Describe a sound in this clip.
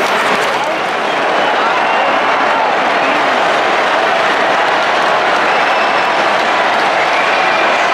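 A large stadium crowd roars and cheers loudly all around.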